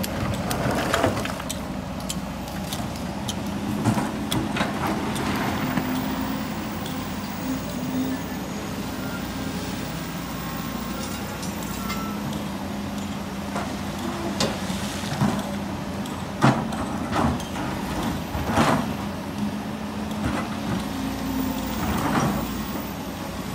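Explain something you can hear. Rocks clatter and knock as an excavator bucket scrapes through rubble.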